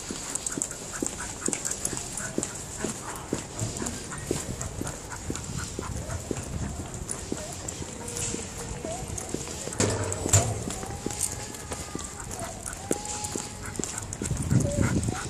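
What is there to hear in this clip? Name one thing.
A dog's claws click on paving stones as it trots along.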